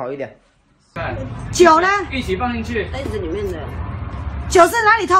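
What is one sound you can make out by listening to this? A young woman shouts angrily close by.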